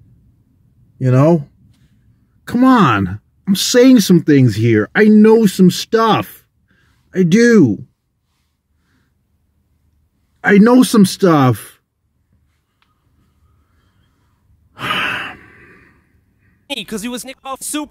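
A man talks with animation, close to a microphone, in short bursts with pauses.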